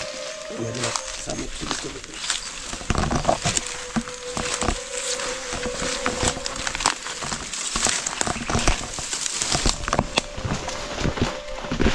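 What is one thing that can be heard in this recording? Leaves and branches rustle and snap as someone pushes through dense brush.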